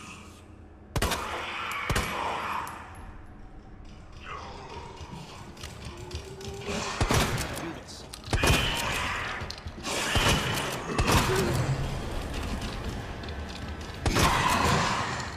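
A pistol fires single shots in an echoing corridor.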